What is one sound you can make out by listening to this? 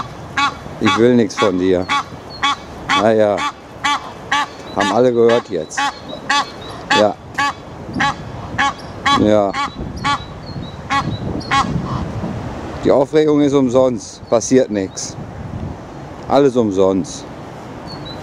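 A goose honks loudly and repeatedly, close by.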